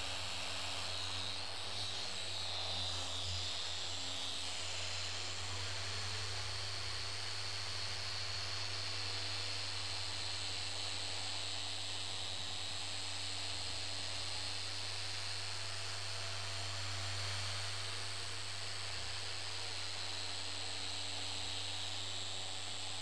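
A power polisher whirs steadily against a surface.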